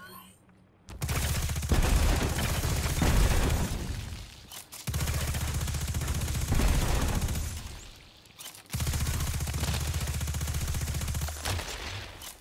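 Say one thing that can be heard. A rapid-fire gun fires in fast bursts.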